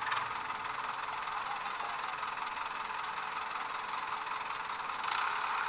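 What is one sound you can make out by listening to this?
A tractor engine roars steadily close by.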